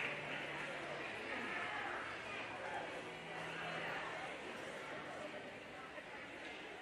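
An audience murmurs and chatters in a large echoing hall.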